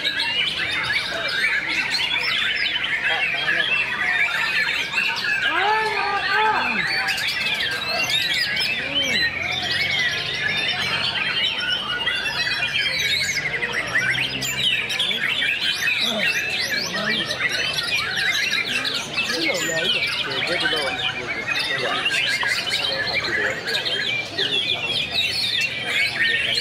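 A songbird sings loud, rapid, warbling phrases close by.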